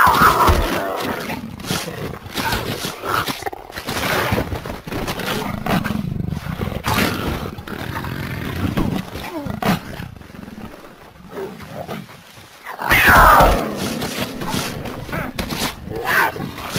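A tiger growls and snarls as it mauls its prey.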